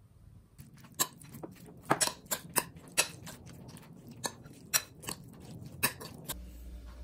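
A metal spoon scrapes and clinks against a ceramic bowl.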